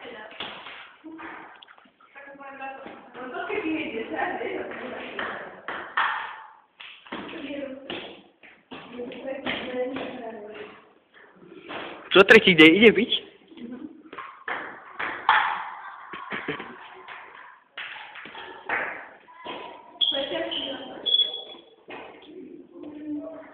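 Teenagers talk and laugh nearby in an echoing room.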